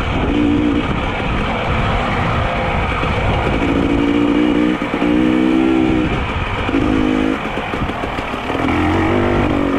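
Wind rushes and buffets loudly outdoors.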